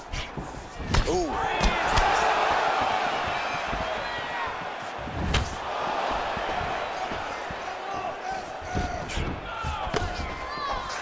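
Punches thud against a body.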